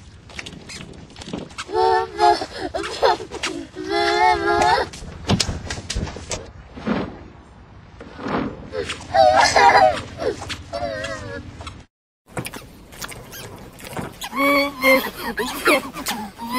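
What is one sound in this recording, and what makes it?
A small child shouts excitedly close by.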